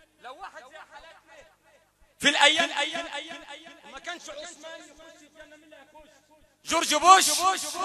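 A man chants loudly and passionately into a microphone, heard through loudspeakers.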